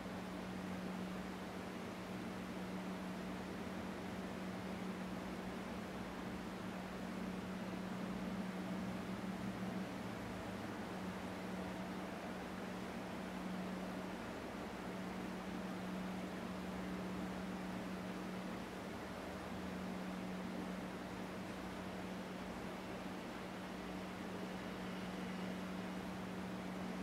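A man hums a low, steady note, pausing briefly now and then.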